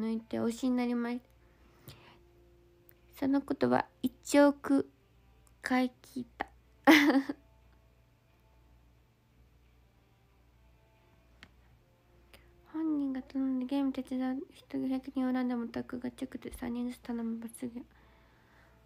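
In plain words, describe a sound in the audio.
A young woman speaks softly and cheerfully close to a microphone.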